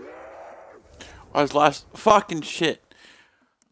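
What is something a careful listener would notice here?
A young man speaks loudly with animation into a headset microphone.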